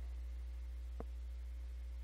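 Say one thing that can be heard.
A metal box knocks against a board.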